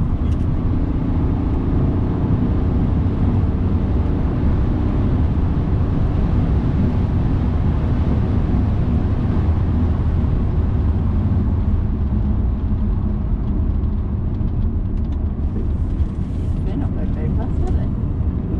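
A car engine roars loudly as the car speeds along a track.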